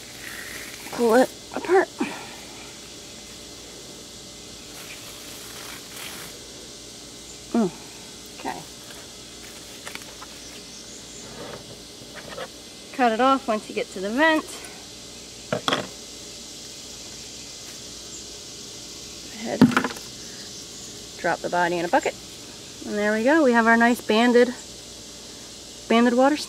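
A woman talks calmly nearby, in short bursts.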